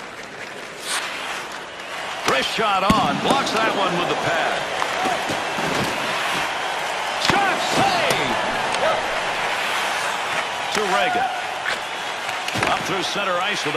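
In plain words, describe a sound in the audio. Hockey sticks slap a puck with sharp clacks.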